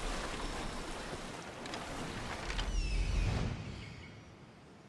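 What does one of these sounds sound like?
Water rushes and splashes against a sailing ship's hull.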